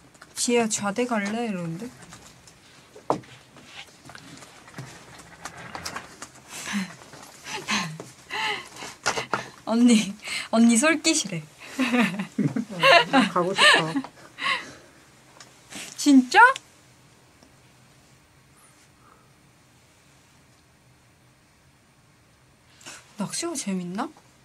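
A young woman talks and laughs with animation close to a microphone.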